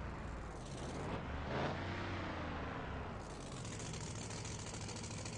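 A game vehicle's engine rumbles steadily.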